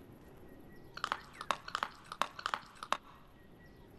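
A mouse nibbles food in short crunchy bites.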